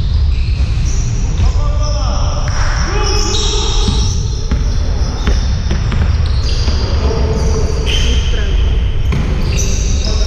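Sneakers squeak sharply on a floor in a large echoing hall.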